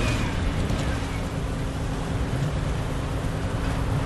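Tyres squeal as a car slides around a corner.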